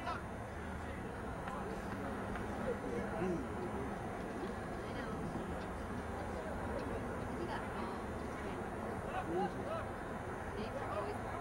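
Young men call out to each other across an open field, some way off.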